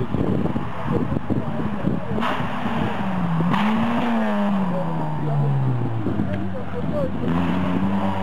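Gravel sprays and crackles under the tyres of a rally car.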